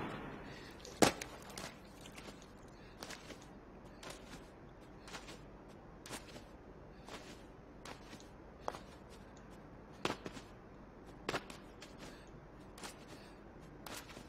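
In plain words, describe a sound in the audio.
Footsteps run across dirt ground.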